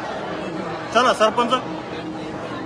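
A man shouts loudly in short bursts.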